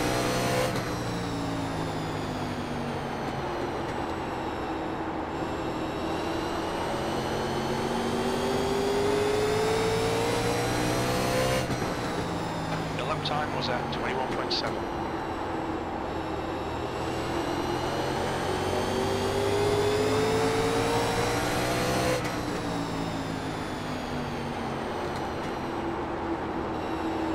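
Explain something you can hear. A race car engine roars steadily, its pitch rising and falling through the laps.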